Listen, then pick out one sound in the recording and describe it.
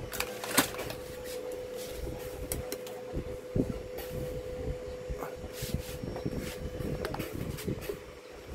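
A hand taps and handles a metal panel with light knocks.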